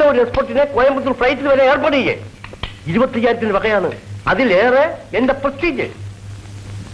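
A man speaks forcefully, close by.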